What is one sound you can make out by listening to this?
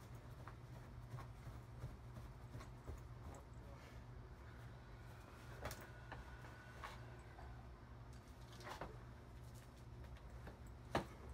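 Shoes tap and scuff on a wooden step.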